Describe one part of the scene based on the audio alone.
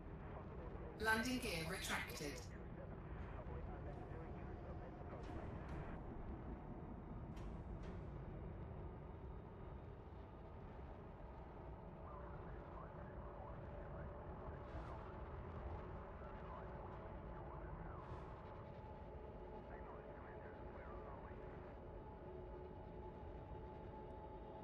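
A spaceship's engine hums low and steady.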